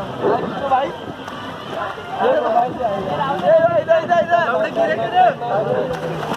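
Young men shout and cheer with excitement close by.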